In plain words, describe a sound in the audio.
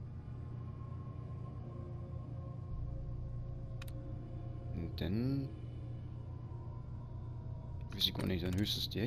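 An old computer terminal hums steadily.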